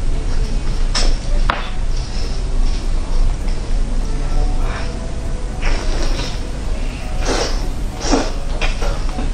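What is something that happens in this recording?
Meat tears and skin crackles close to a microphone.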